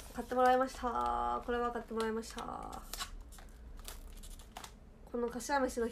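Paper rustles and crinkles as a box is handled.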